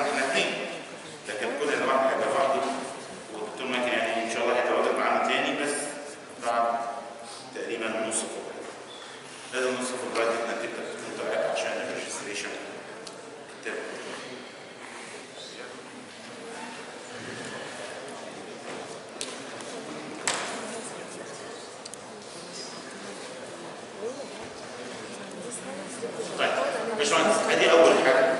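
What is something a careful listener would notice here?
An older man lectures through a clip-on microphone, in a room with some echo.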